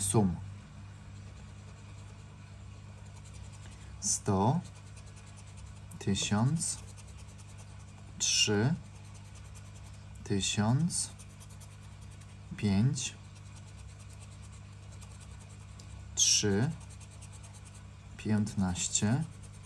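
A coin scratches the coating off a scratch card.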